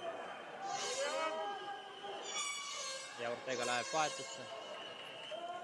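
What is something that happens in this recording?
Young men talk nearby in an echoing hall.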